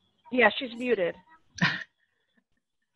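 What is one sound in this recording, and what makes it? A woman speaks over an online call.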